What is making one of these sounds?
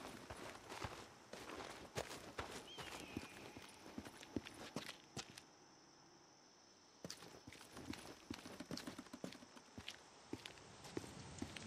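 Footsteps crunch steadily on grass and pavement.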